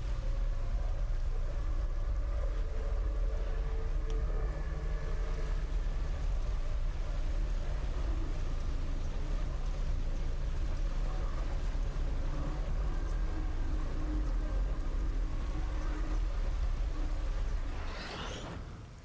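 Heavy rain pours down with a deep, steady rumble.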